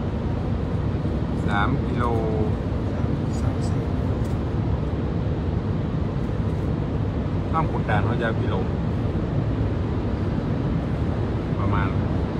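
Tyres and engine rumble low and steady inside a car driving through a tunnel.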